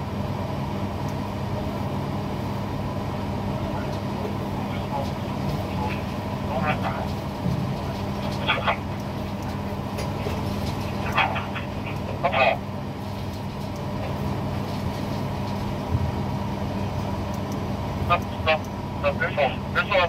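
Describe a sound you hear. A crane's motor hums steadily close by.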